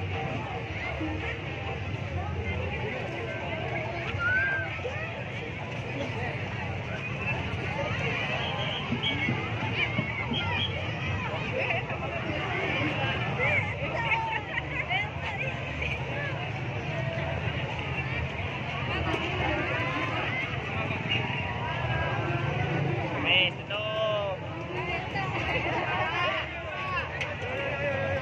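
A large crowd chatters loudly all around outdoors.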